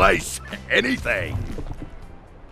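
A man speaks loudly with animation.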